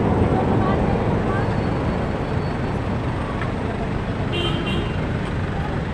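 Busy street traffic hums and rumbles steadily outdoors.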